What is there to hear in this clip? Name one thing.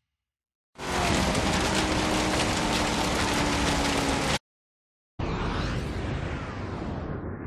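Tyres crunch and rattle over gravel.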